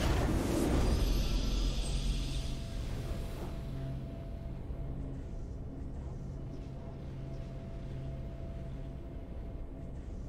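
A triumphant victory fanfare plays with a soft held tone.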